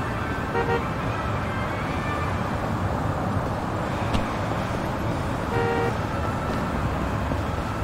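Car traffic hums steadily along a street.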